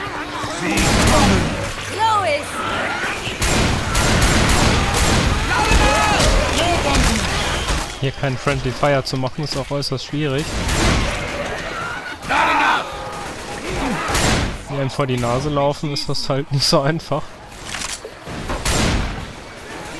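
A shotgun fires loudly in sharp blasts.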